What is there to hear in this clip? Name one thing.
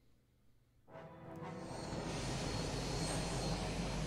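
A spaceship's engines roar steadily as it sets down.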